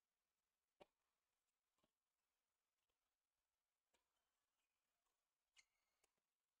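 A tennis ball is struck by a racket with faint sharp pops.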